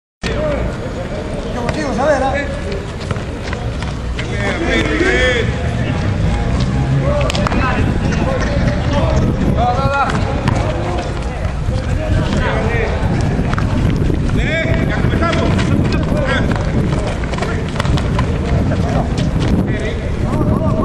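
Men shout and call out across an open outdoor court.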